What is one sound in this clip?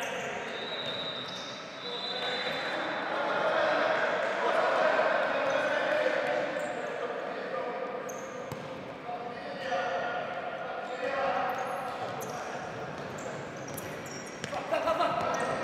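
Shoes squeak sharply on a hard indoor floor.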